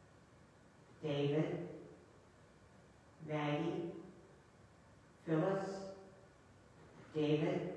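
An elderly woman speaks calmly into a microphone in a reverberant room.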